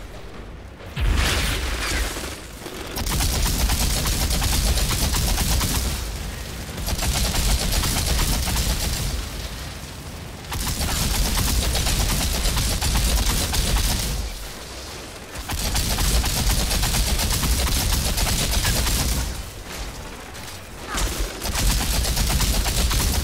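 A rapid-firing gun shoots in long, loud bursts.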